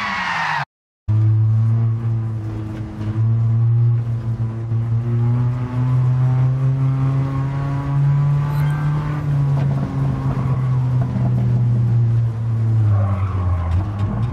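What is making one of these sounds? A sports car engine drones at high revs inside the cabin.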